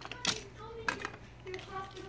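Plastic toys clatter and knock together.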